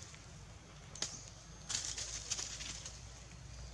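A young monkey scampers and lands with soft thumps and rustles nearby.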